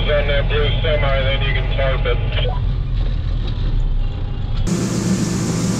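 A truck engine idles with a low rumble inside the cab.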